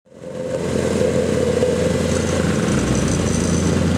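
A plate compactor rattles and thumps on asphalt.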